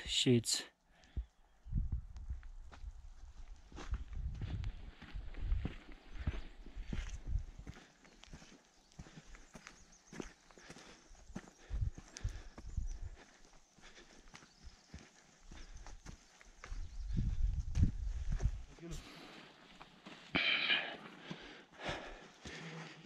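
Footsteps crunch on a stony path.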